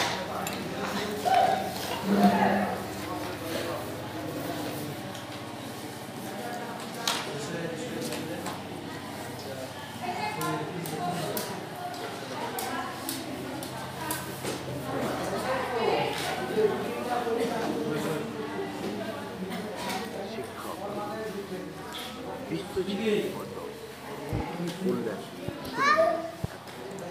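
Children chatter and murmur nearby in a room.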